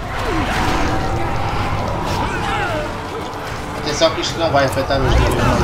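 Soldiers shout and cry out in battle.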